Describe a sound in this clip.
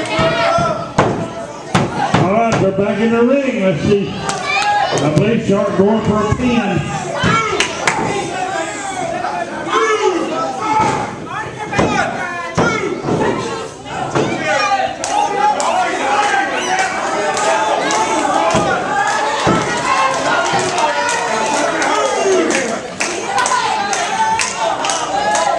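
Bodies slam onto a wrestling ring's canvas with loud thuds.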